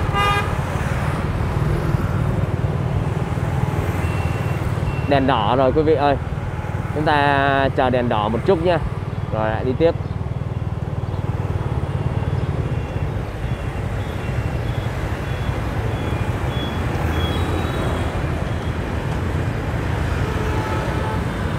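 A motorbike engine hums steadily at close range.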